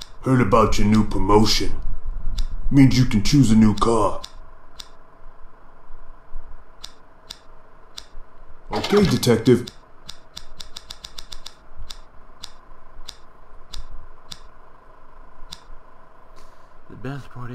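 Short clicks sound as menu choices change.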